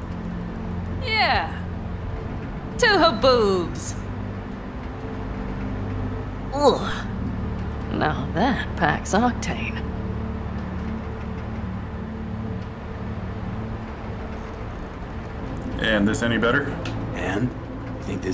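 A young woman speaks casually and teasingly, close by.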